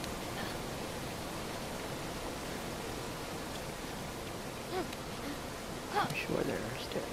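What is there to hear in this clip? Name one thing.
A climber's hands and feet scrape softly against rock.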